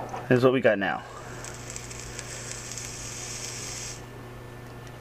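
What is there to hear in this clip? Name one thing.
An electronic cigarette coil sizzles and hisses steadily.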